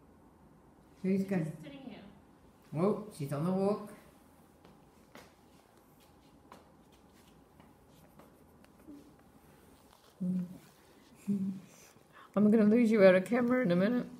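A young woman talks affectionately, close by.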